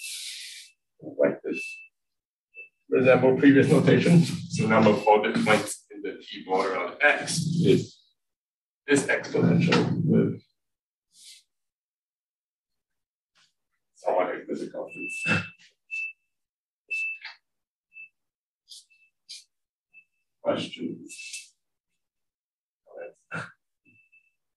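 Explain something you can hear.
A young man lectures calmly, in pauses, close to a microphone.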